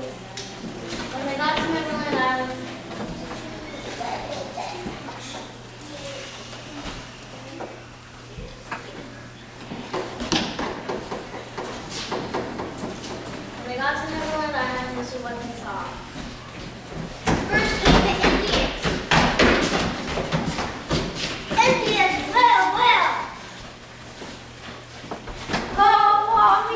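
Children's voices speak lines in a large echoing hall.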